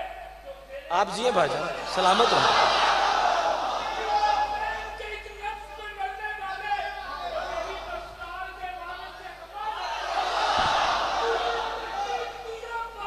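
A crowd cheers and shouts with excitement.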